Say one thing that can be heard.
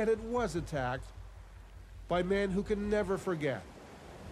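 Small waves wash gently onto a pebble beach.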